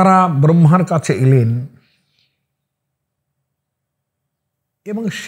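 An elderly man speaks with animation close to a microphone.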